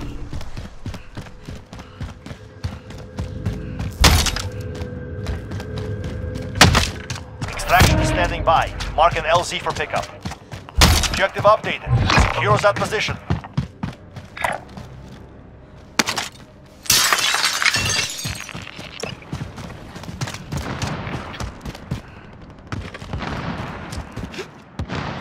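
Footsteps tread quickly over hard ground.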